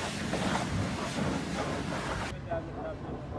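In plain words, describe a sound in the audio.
A pressure washer sprays water hard against a tyre with a loud hiss.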